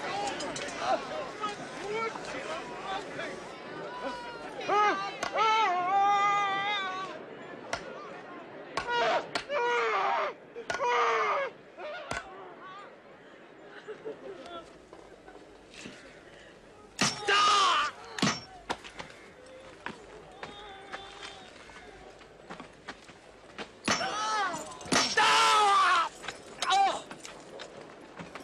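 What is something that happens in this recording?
A man cries out in pain, groaning and screaming loudly.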